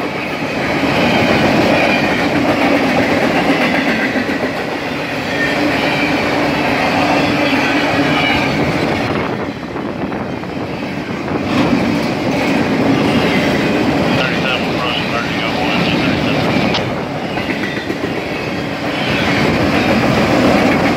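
Steel wheels clatter and squeal on the rails.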